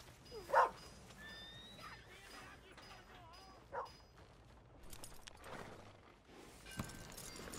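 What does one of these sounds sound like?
A horse's hooves thud slowly on grass.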